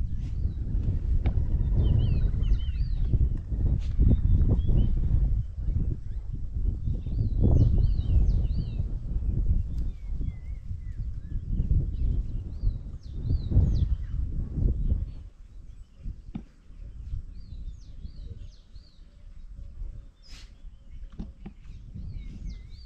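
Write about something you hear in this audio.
Wild dogs make high twittering calls nearby.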